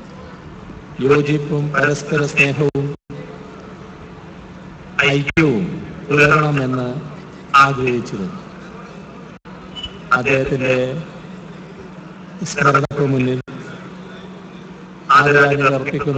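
A middle-aged man speaks slowly and calmly into a microphone, with pauses between phrases.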